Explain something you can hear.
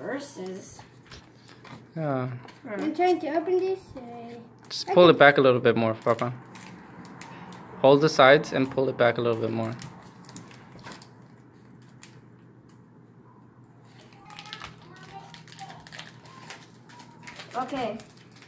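Cards crinkle and rustle in a boy's hands.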